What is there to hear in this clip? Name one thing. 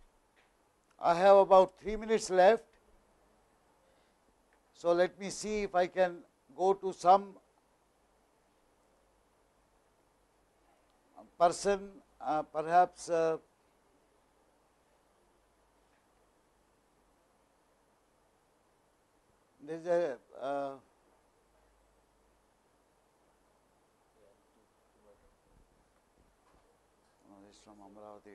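A middle-aged man speaks calmly in short phrases through a microphone, with pauses between them.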